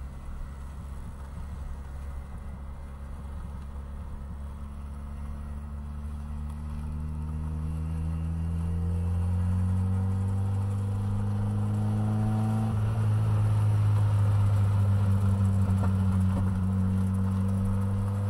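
A car engine hums and then revs up, its pitch rising steadily before dropping as the gear changes.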